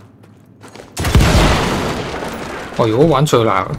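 An explosion booms and crackles, then slowly dies away.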